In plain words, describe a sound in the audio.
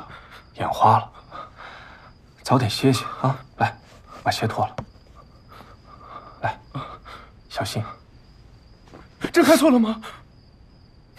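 A young man speaks quietly and tensely nearby.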